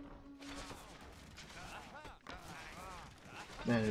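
Swords clash in a battle.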